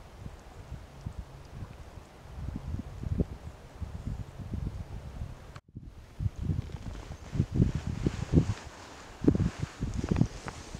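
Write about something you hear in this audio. Wind gusts outdoors with low, buffeting rumbles.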